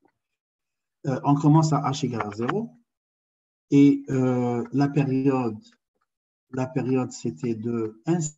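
A man explains calmly, heard through an online call.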